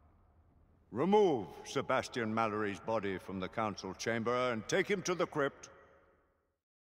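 An elderly man speaks gravely and firmly, close by.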